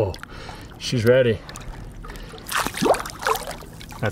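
A fish splashes in the water as it is released.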